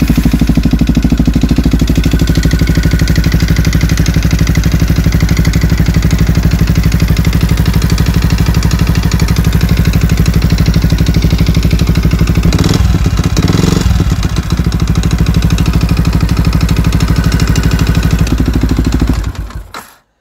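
A motorcycle engine idles with a fast, steady, close-up chugging rumble.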